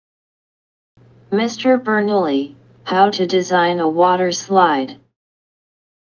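A young woman asks a question.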